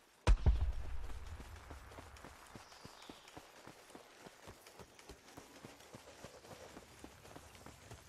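Footsteps run quickly over sand.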